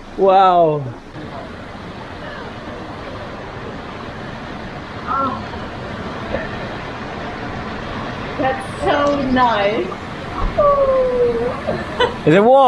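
Water pours and splashes steadily into a pool.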